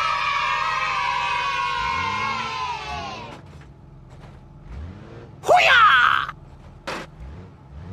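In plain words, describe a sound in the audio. A vehicle thumps over speed bumps.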